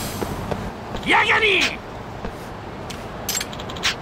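A young man speaks loudly and taunting, close by.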